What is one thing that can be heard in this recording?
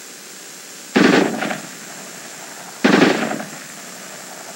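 Two loud gunshots ring out close by, echoing across open ground.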